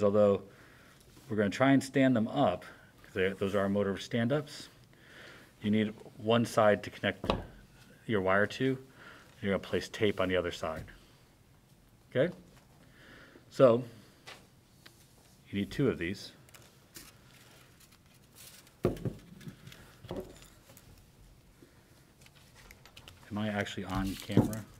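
A man talks calmly close by, explaining.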